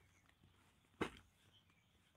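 A plastic cooler knocks as it is set down.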